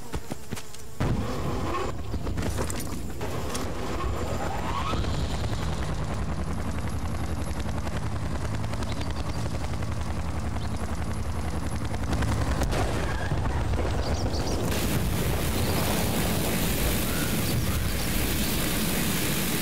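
A helicopter's rotor thumps steadily and loudly.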